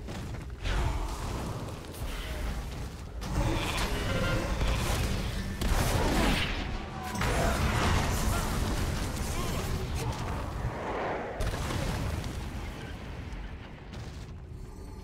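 Fiery spell explosions burst and crackle repeatedly.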